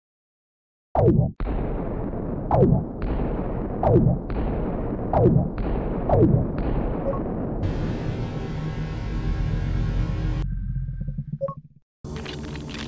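Heavy blasts boom again and again, each with a falling whoosh.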